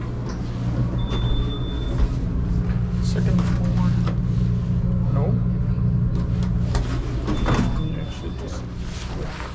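An elevator chime beeps.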